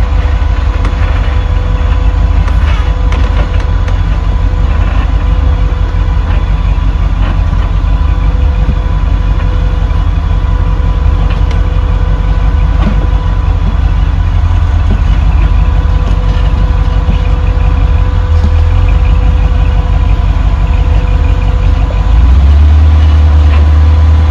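A rock crawler's engine rumbles loudly and steadily, then grows louder near the end.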